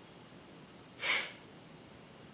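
A young man gives a short snort of laughter close by.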